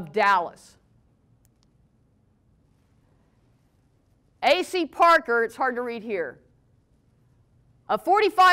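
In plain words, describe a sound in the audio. A woman speaks calmly through a microphone, pausing between phrases.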